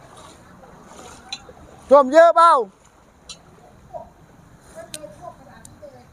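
A man wades through shallow floodwater with swishing splashes.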